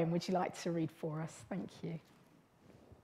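A woman speaks calmly into a microphone in a reverberant room.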